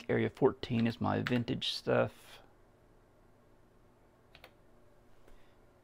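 A computer key clicks.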